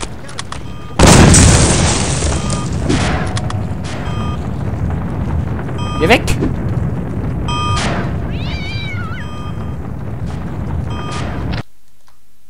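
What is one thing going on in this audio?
A gun fires rockets that roar and explode.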